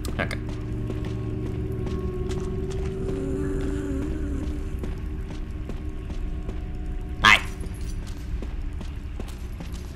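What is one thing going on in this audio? Footsteps crunch steadily on a rocky dirt floor.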